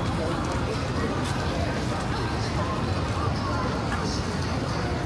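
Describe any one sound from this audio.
Rain patters steadily on umbrellas and wet pavement outdoors.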